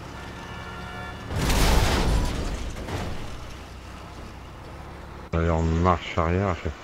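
A heavy truck engine rumbles and revs.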